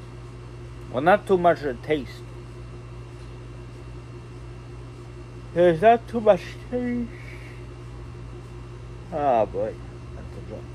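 A young man speaks casually in short bursts close to the microphone.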